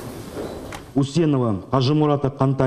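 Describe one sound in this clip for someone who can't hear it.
A man reads out aloud through a microphone.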